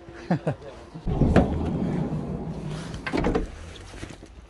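A vehicle's sliding door rumbles open.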